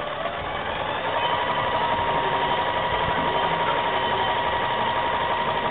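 A sewing machine runs with a steady, fast whirring hum.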